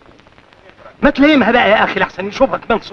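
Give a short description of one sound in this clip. An elderly man speaks with animation nearby.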